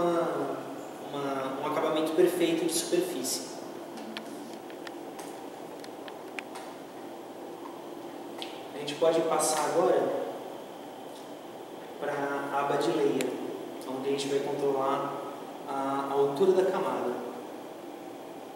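A young man talks calmly.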